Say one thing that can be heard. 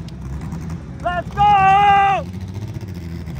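A race car engine revs hard in a sharp, rising scream and then drops away.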